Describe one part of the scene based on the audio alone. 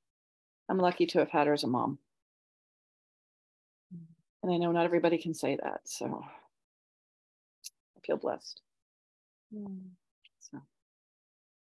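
A middle-aged woman speaks calmly over an online call, with pauses.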